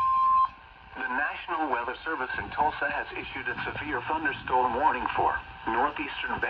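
A man's voice reads out through a small radio loudspeaker.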